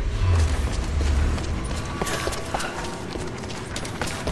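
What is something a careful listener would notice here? Footsteps scuff across stone.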